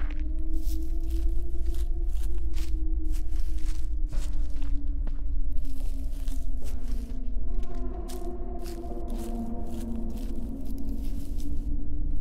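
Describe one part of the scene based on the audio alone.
Footsteps rustle through dry grass at a slow walking pace.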